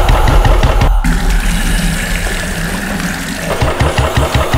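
Water gushes from a pipe and splashes.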